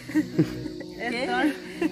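A young woman laughs brightly close by.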